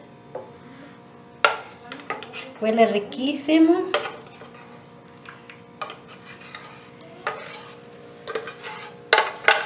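A spoon scrapes and taps against a container.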